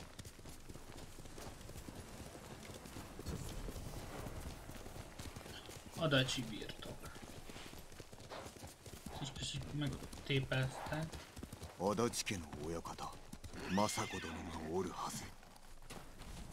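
A horse's hooves thud at a gallop.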